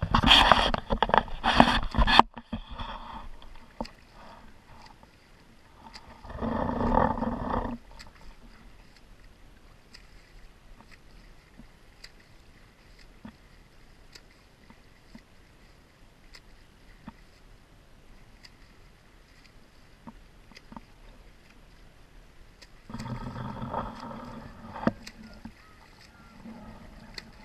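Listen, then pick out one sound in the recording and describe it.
A swimmer splashes with steady strokes through open water.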